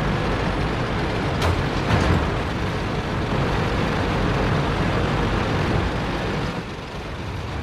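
A heavy tank engine rumbles and clatters close by.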